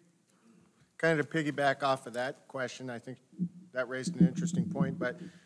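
A man speaks into a microphone in a large room.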